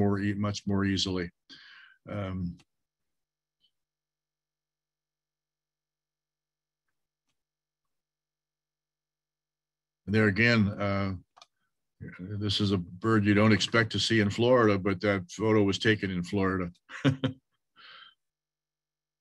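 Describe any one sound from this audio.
An elderly man speaks calmly over an online call, pausing between phrases.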